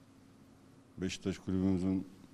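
A man speaks calmly into microphones, with a slight room echo.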